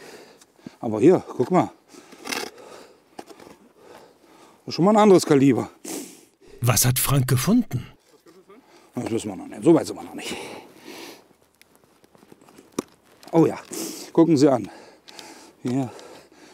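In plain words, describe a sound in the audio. A spade cuts into soil and scrapes through dirt.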